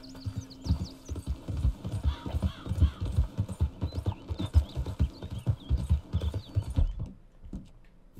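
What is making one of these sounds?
Horse hooves thud in a quick gallop.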